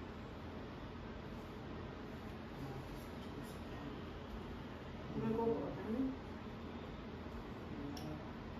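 A comb brushes softly through hair.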